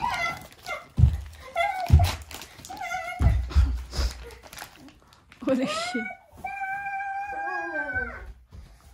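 Feet thump on a wooden floor.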